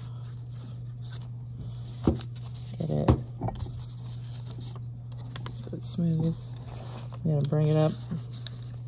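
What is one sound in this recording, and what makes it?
Paper rustles softly as hands press and fold it.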